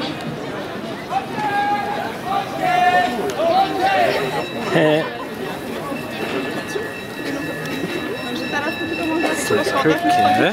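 A large crowd chatters outdoors.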